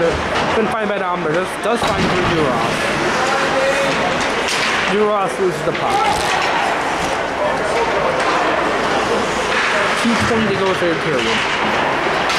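Young men shout to one another on the ice.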